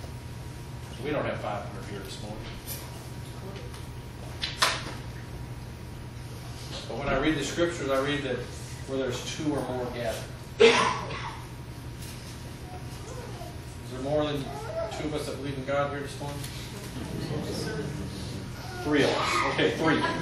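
A man speaks to an audience in a room with a slight echo, pausing between phrases.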